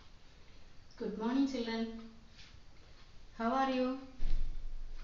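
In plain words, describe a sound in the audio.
A middle-aged woman speaks calmly and clearly, close by.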